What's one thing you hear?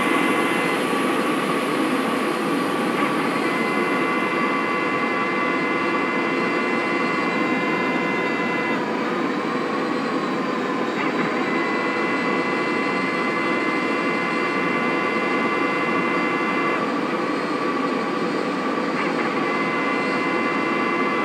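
A jet engine whines and hums steadily as an airliner taxis.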